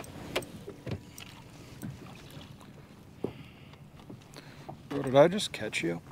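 Water splashes as a fish is netted beside a boat.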